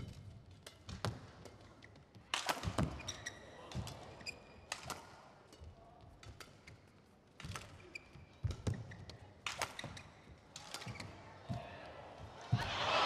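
A shuttlecock is struck sharply back and forth in a rally.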